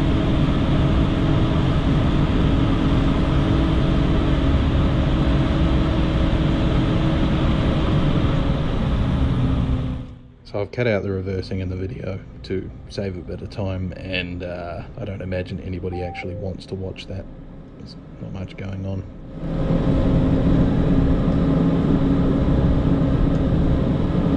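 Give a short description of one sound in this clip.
A snow groomer's engine rumbles loudly and steadily.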